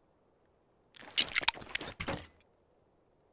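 A bright chiming whoosh plays as an item is placed.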